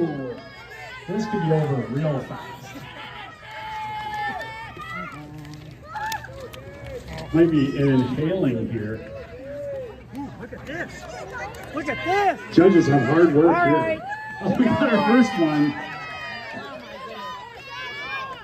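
A crowd of men, women and children shout and cheer with excitement outdoors.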